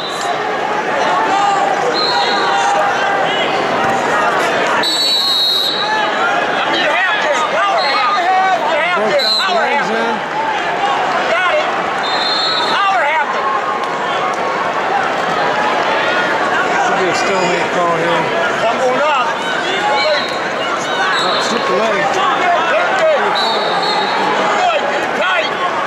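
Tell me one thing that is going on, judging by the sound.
A large crowd chatters and cheers, echoing through a big hall.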